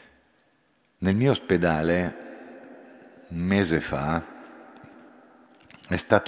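An elderly man chants slowly into a microphone, echoing through a large hall.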